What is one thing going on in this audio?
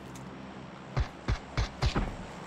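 Footsteps thud on the ground.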